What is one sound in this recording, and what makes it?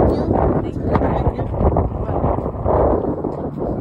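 A woman talks excitedly close by outdoors.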